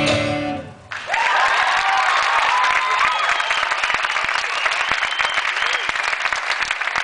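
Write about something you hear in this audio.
An audience cheers and whistles.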